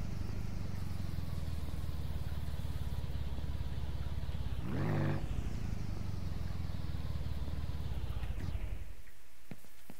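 A small vehicle engine idles and runs with a low rumble, then cuts off.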